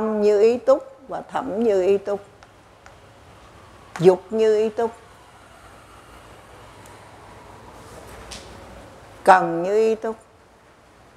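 An elderly man speaks slowly and calmly into a microphone, in short bursts.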